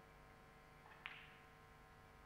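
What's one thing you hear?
A cue strikes a ball with a soft click.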